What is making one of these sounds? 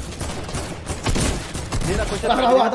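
Gunshots crack in quick bursts.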